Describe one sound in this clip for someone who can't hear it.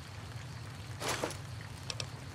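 A bag rustles open with a soft zip.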